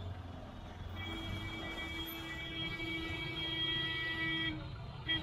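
A vehicle horn blares steadily.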